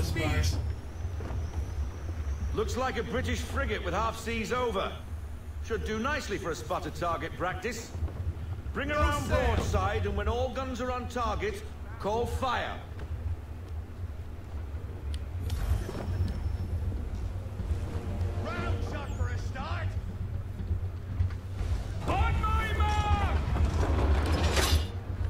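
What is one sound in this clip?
A man talks casually into a close microphone.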